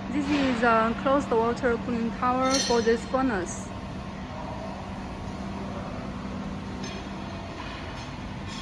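Industrial machinery hums steadily.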